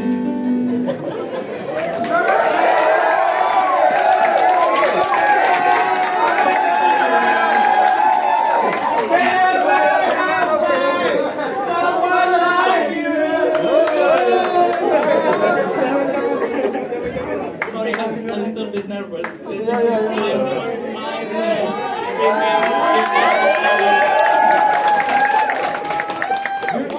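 An electric keyboard plays chords along with the singing.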